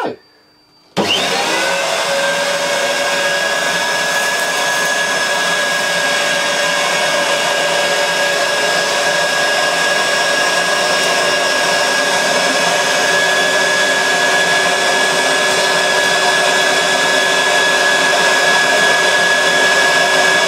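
A vacuum cleaner starts up and hums steadily at close range.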